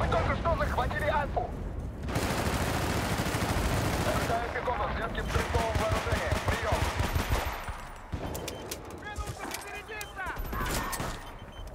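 Rapid gunfire cracks in bursts.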